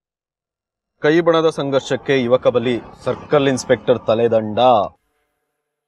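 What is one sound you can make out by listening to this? A young man talks calmly and close by.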